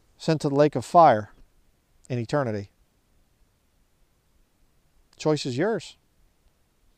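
A man speaks up close in a calm, measured voice.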